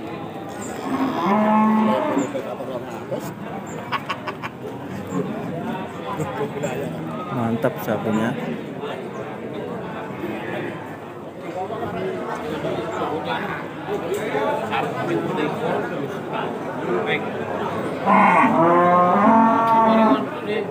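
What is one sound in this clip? A man calls out loudly close by.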